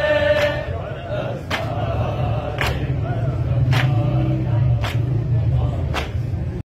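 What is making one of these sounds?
A crowd of men chant together in a loud rhythmic lament.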